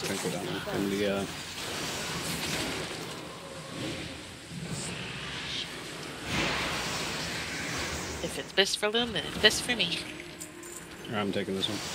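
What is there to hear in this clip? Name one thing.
Game spells whoosh and crackle in a battle.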